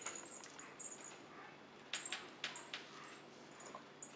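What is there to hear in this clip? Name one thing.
A dog sniffs and licks noisily.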